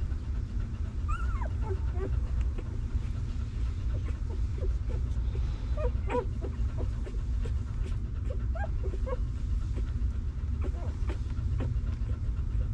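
Puppies whimper and squeak softly.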